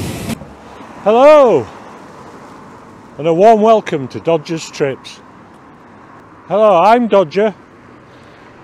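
An older man speaks close by, outdoors.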